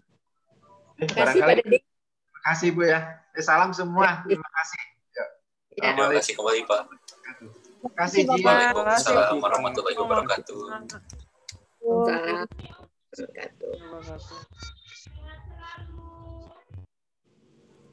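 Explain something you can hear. An older woman talks with animation over an online call.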